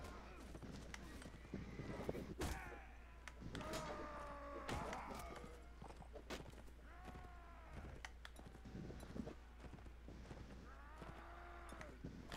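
Steel weapons clash and strike in a fight.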